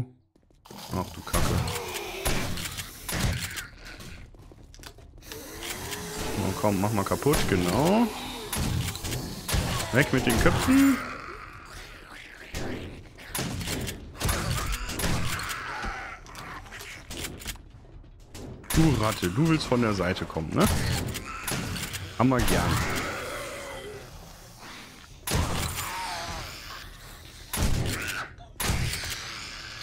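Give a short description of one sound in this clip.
Gunshots fire in sharp bursts, echoing in a tight space.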